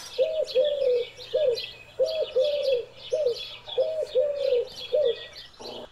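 Dove wings flap and clatter as birds land.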